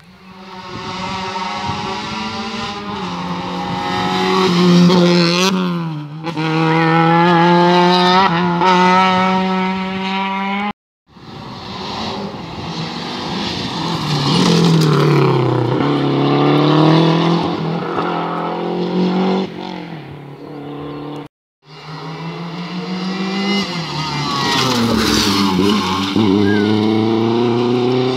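A rally car engine roars close by, revving hard and rising and falling in pitch as it shifts gears.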